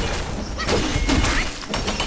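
A metal blade clangs against a shield.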